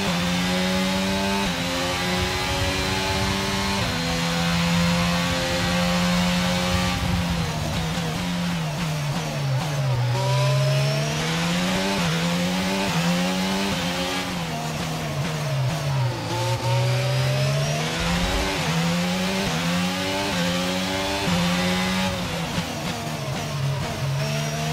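A racing car engine screams at high revs, shifting gears up and down through the corners.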